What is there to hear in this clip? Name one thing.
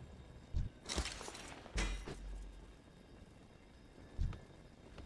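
Magical game effects whoosh and thud in short bursts.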